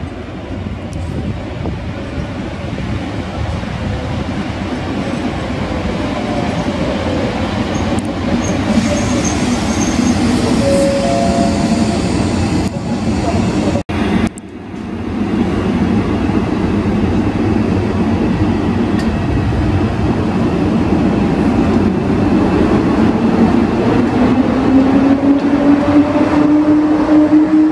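An electric locomotive hums as it pulls a train slowly into the station.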